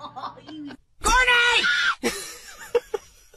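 A boy screams loudly, close by.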